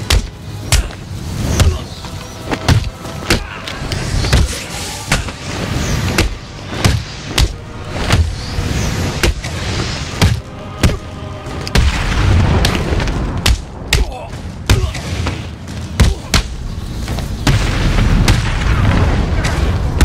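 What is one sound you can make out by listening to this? Punches and kicks land with heavy thuds in a fast brawl.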